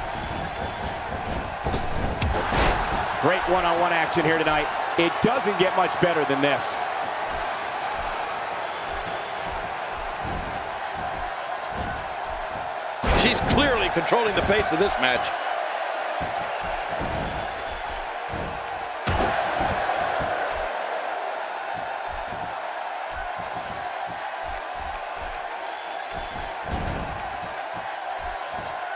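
A large crowd murmurs and cheers in a big arena.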